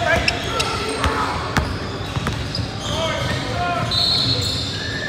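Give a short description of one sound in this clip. A basketball bounces on the floor with quick thuds.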